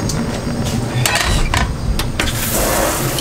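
A metal pan clanks down onto a stove.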